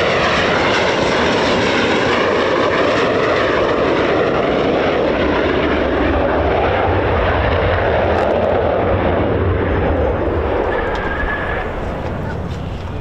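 A jet roars loudly as it comes in to land, then fades away.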